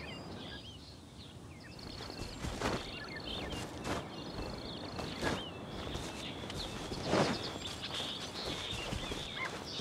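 Footsteps run quickly through grass.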